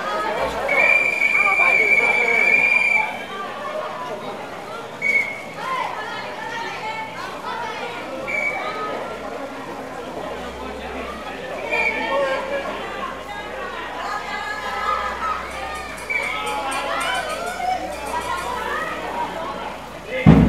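A crowd of children and adults chatter and call out nearby, outdoors.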